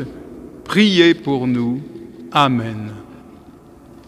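An elderly man chants in a sung voice through a microphone, echoing in a large hall.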